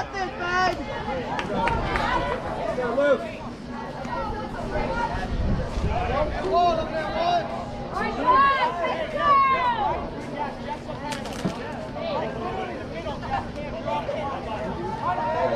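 Young players and spectators shout and cheer outdoors.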